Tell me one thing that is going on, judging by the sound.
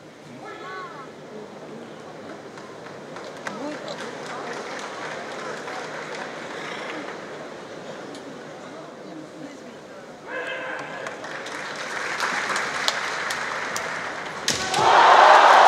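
Bamboo swords clack together.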